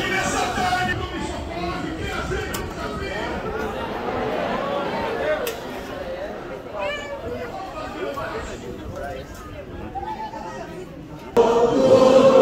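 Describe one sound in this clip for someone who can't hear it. A crowd of people talk outdoors.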